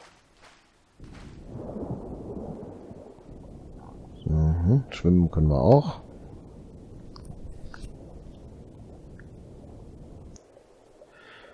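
Water swishes and gurgles softly.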